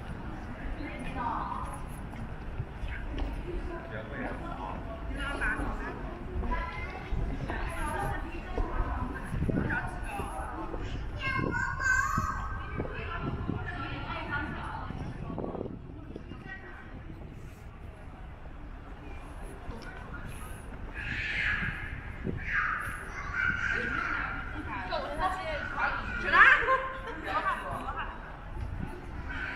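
Voices of young people chatting echo around an open outdoor space.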